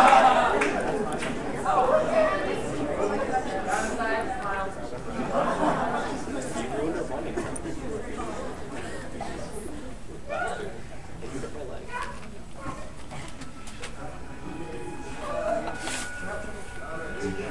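Young people in an audience chatter and call out.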